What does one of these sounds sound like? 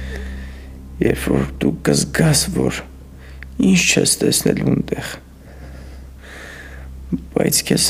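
A man speaks in a low, earnest voice close by.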